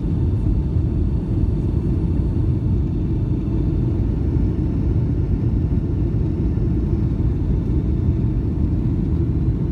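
Jet engines roar steadily in a deep, constant rumble.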